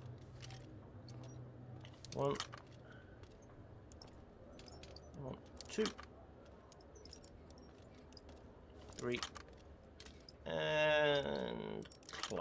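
Metal lock picks click and scrape inside a lock.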